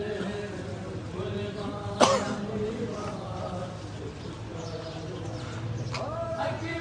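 A crowd of men chants together loudly outdoors.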